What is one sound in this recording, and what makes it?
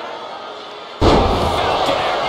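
A body slams heavily onto a wrestling mat with a loud thud.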